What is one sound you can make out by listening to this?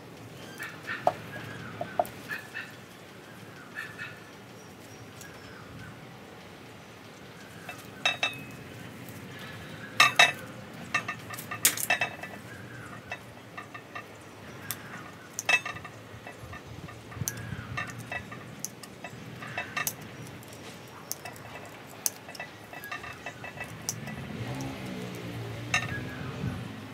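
Pruning shears snip through small twigs with sharp clicks.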